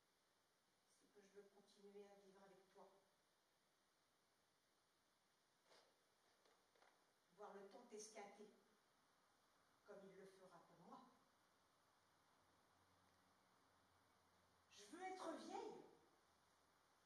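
A woman speaks into a microphone in short phrases with pauses, in a large room.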